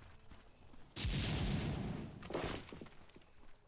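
A spell in a video game bursts with a loud whoosh.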